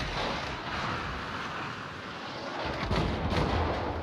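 Shells splash into the water.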